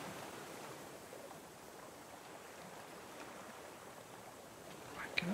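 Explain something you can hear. Gentle waves lap and wash steadily against a wooden raft.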